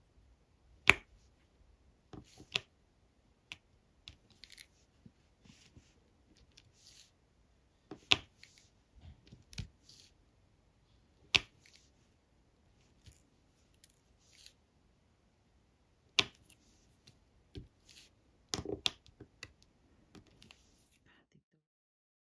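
A plastic pen taps and clicks sharply on tiny plastic beads, now and then.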